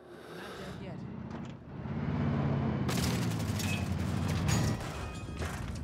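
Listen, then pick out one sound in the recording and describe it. A heavy truck engine rumbles and revs.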